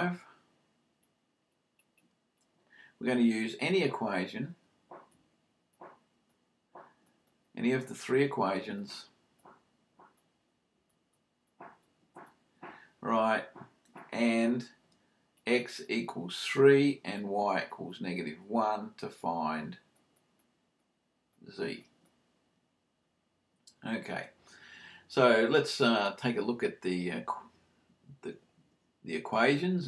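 An older man speaks calmly and steadily close to a microphone, in bursts with pauses.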